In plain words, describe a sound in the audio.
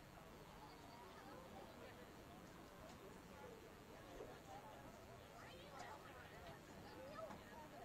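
Young people's voices chatter faintly in the distance, outdoors.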